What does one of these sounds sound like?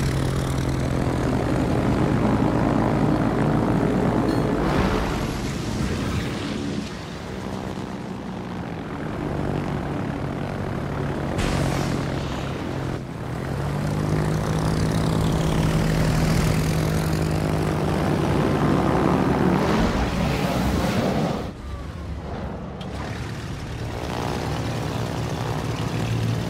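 Propeller aircraft engines drone steadily.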